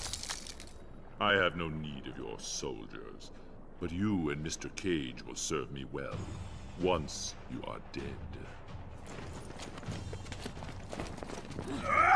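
A man speaks in a deep, menacing voice.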